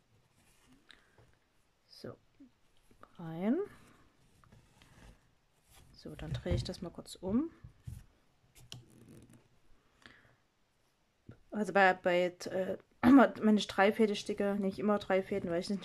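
Thread rasps softly as it is pulled through stiff fabric.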